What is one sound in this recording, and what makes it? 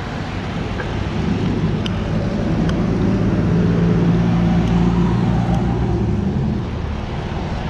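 A car engine hums loudly as it passes close by.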